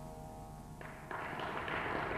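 A plucked string instrument plays a melody with a droning hum.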